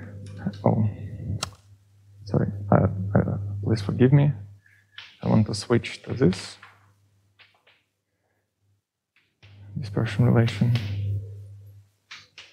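A man speaks calmly and explains.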